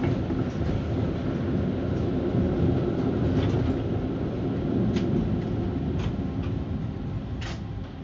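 A tram rumbles steadily along its tracks.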